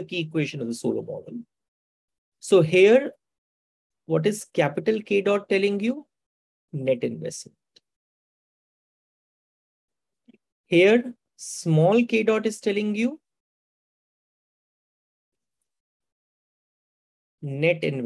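A man speaks calmly and steadily into a close microphone, with pauses.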